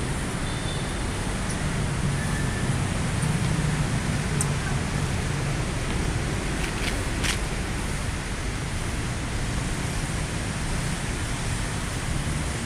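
Footsteps tap on hard steps.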